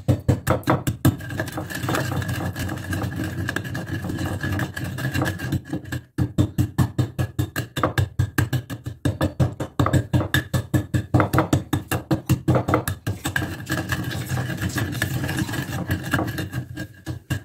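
A wooden pestle grinds against stone with a gritty scraping.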